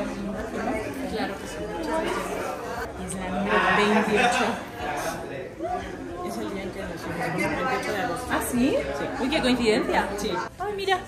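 Another young woman answers close by.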